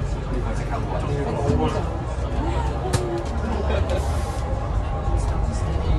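A bus rattles and clatters as it drives.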